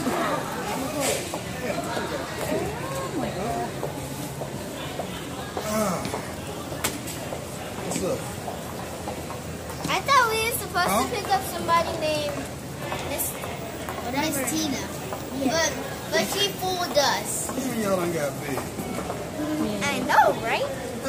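A man talks warmly close by.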